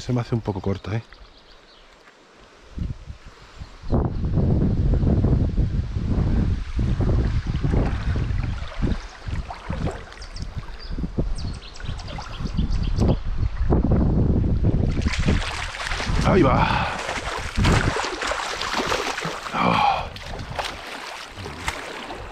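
A river's water flows and ripples close by.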